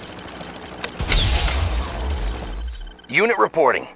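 A laser weapon fires with a loud buzzing zap.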